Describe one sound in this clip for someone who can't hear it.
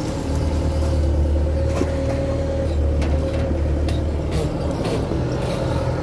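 An excavator bucket scoops and drops wet mud.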